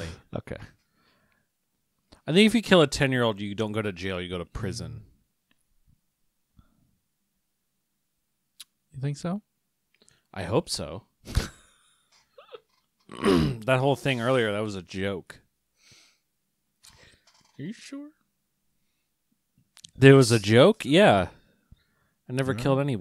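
A young man talks with animation close into a microphone.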